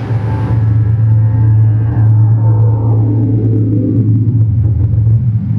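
An electronic tone sweeps slowly downward.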